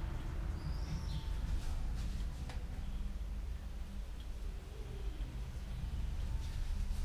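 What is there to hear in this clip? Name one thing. Tools clink and knock on a workbench.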